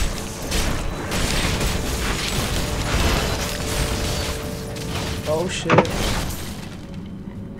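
Magic spells crackle and blast during a fight.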